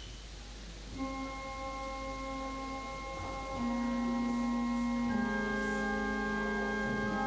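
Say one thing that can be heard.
A pipe organ plays sustained chords that swell louder in a large echoing hall.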